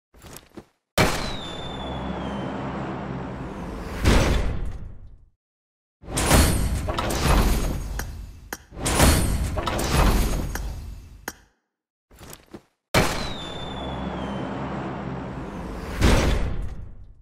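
A flare gun fires with a sharp bang and a long hiss.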